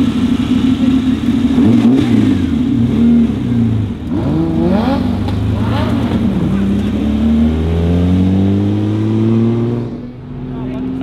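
A sports car engine rumbles and revs loudly as the car pulls away.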